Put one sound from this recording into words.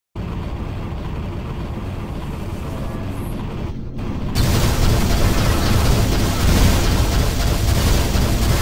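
A heavy mechanical rumble hums steadily.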